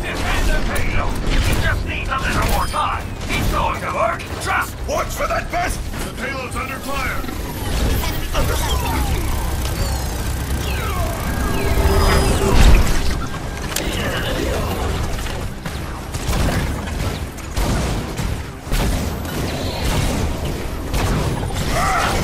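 Heavy gunfire rattles fast and loud.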